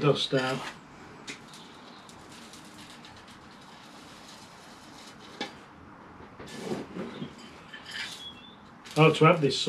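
Metal tools clink and snip at a potted tree.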